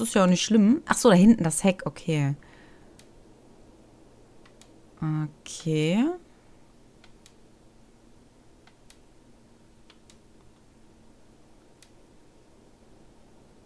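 Soft interface clicks tick as a selection moves.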